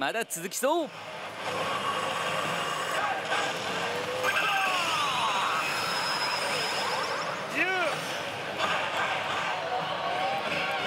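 A slot machine plays electronic jingles and sound effects.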